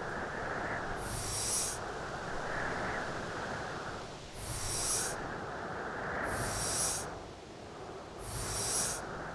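A snowball scrapes and rolls across snow in short bursts.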